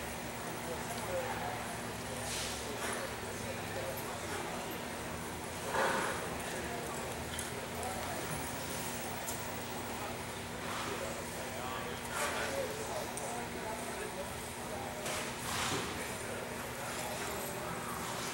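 Cattle shuffle and move about in an echoing indoor arena.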